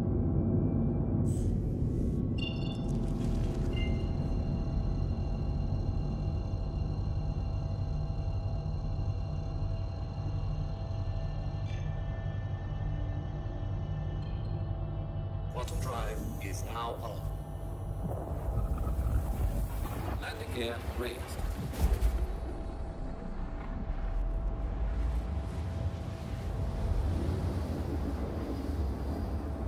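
A spacecraft engine hums low and steady.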